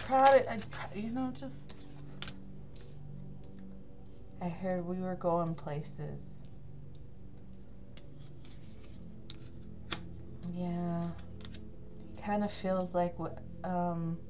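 A card is laid down softly on a tabletop.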